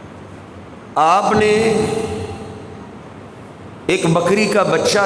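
A man speaks loudly and with emphasis into a microphone, heard through a loudspeaker with echo.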